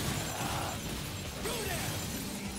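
Ice shatters with a crackling burst.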